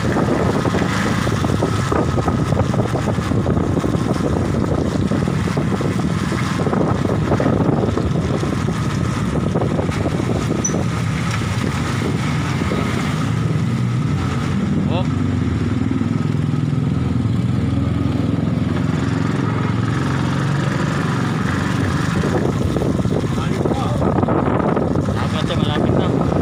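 Wind buffets the microphone steadily.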